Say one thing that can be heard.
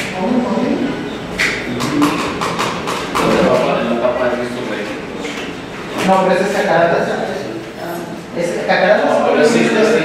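Several men and women talk over one another in a small room.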